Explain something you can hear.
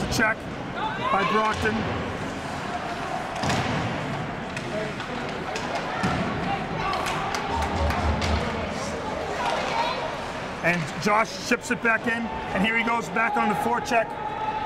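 Many voices chatter in a large echoing rink.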